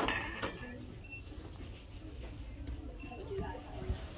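Drinking glasses clink together softly.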